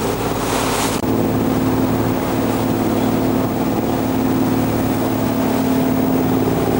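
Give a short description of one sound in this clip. A motor boat's engine drones.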